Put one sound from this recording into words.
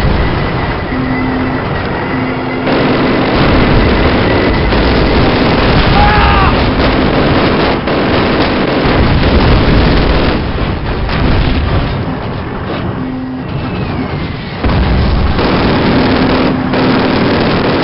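A tank engine rumbles steadily as the tank rolls forward.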